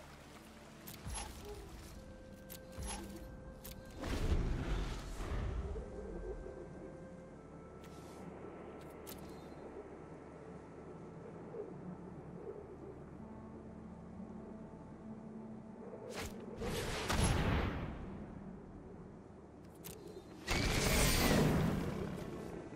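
Digital game sound effects whoosh and rumble in short bursts.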